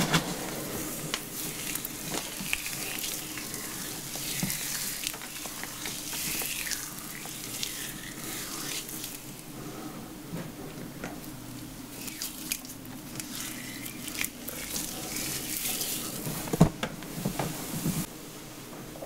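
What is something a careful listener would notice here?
Hands squeeze and squish wet hair.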